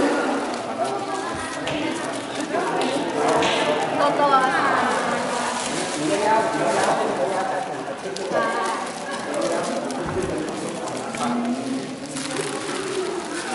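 A crowd of young people chatter and talk over one another nearby, echoing in a large hall.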